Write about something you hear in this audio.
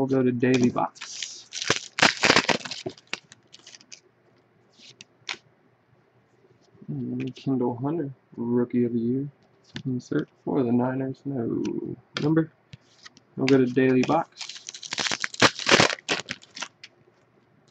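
A foil wrapper crinkles.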